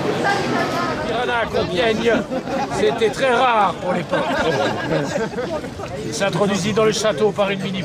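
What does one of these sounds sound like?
An older man talks close by with animation.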